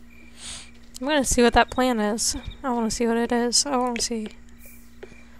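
A young woman speaks briefly and close into a microphone.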